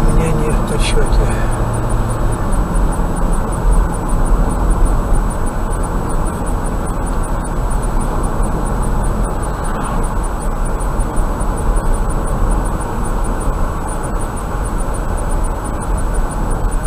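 Tyres rumble steadily on an asphalt road as a car drives along.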